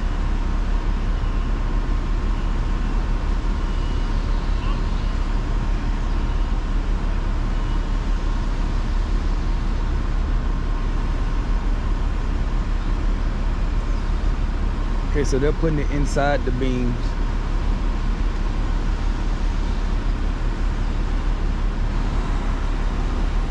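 A crane's diesel engine rumbles steadily nearby.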